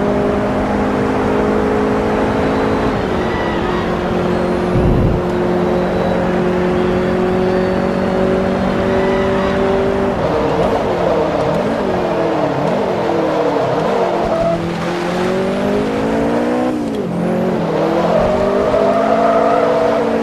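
A racing car engine roars at high speed, its pitch dropping and rising as it brakes and accelerates through turns.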